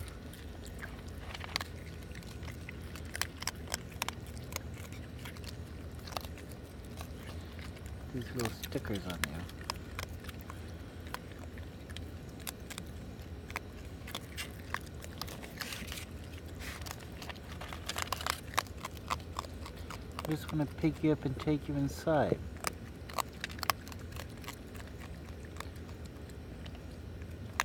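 A raccoon crunches dry pet food close by.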